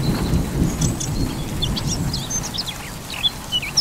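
Thunder rumbles low in the distance and fades.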